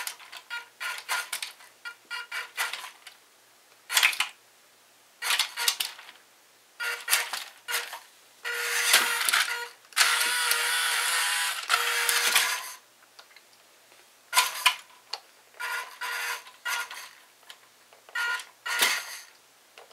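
A small electric toy motor whines in short bursts.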